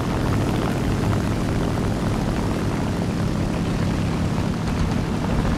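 Aircraft engines drone loudly and steadily.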